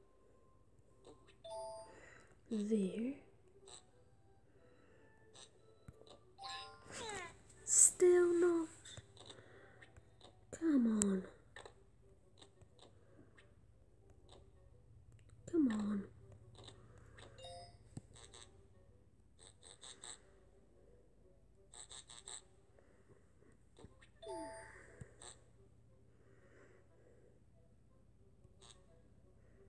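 Cartoon game sound effects chirp, pop and squeak.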